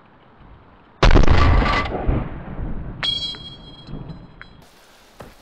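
A rifle shot cracks and echoes away across open ground.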